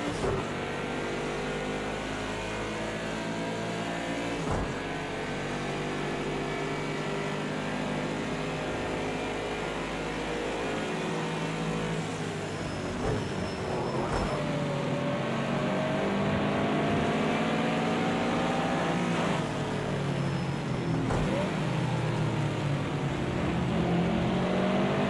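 A racing car engine roars loudly from inside the cabin, its pitch rising and falling through the gears.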